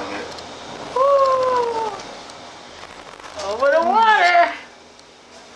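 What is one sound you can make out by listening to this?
A man speaks in a drawn-out, sing-song voice nearby.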